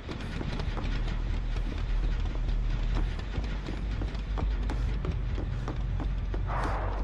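Quick footsteps thud on wooden boards and stone floor.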